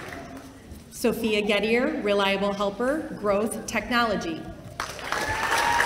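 A woman speaks clearly into a microphone in a large hall.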